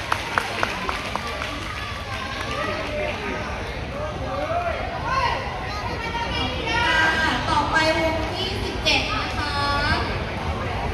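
Upbeat pop music plays loudly over loudspeakers.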